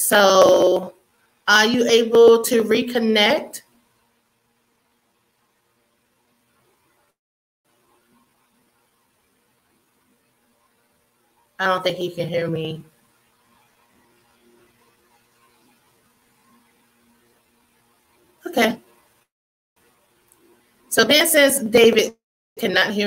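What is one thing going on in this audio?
A woman talks warmly through an online call.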